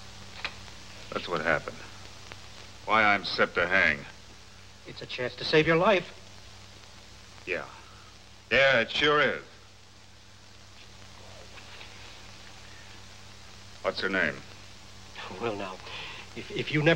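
A younger man speaks firmly, close by.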